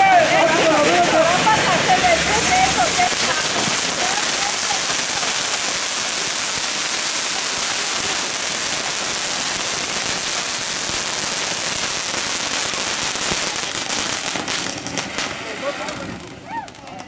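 Smoke flares hiss loudly and steadily.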